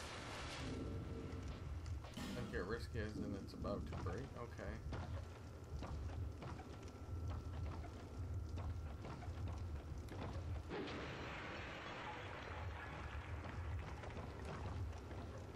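Footsteps thud on creaking wooden planks.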